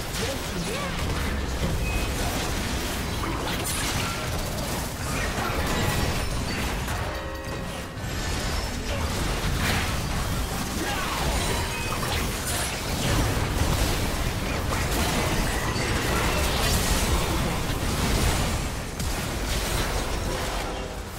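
Video game spell effects blast, whoosh and crackle in a busy battle.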